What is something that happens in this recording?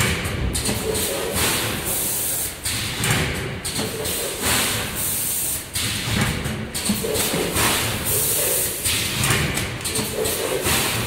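Air hisses from a packaging machine in short repeated bursts.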